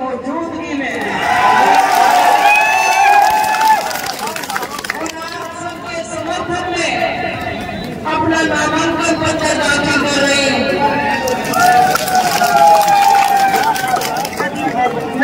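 A woman speaks forcefully through a loudspeaker microphone.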